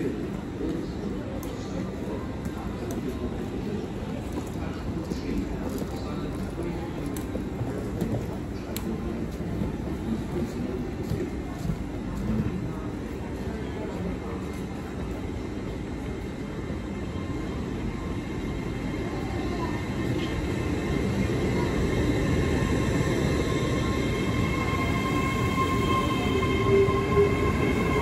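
A train approaches slowly and rumbles past close by.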